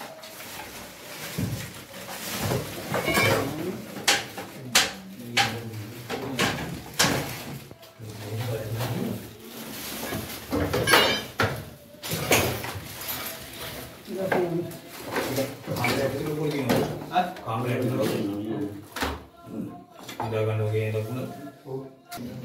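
Loose items clatter and rattle as hands rummage through them.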